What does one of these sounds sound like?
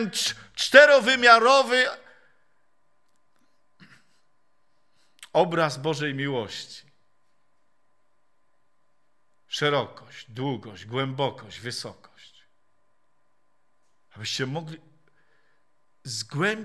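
An elderly man speaks with animation into a microphone, pausing between phrases.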